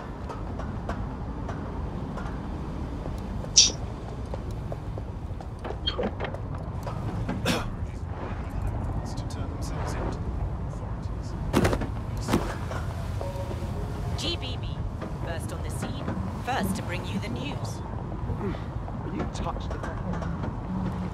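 Footsteps patter quietly on stone and metal steps.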